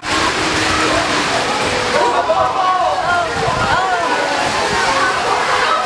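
A crowd of spectators cheers and shouts excitedly outdoors.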